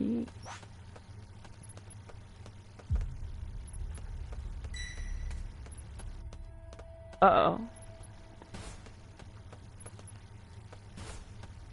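A game character's footsteps patter quickly on pavement.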